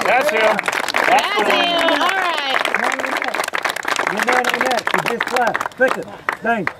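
A group of young men claps hands in rhythm.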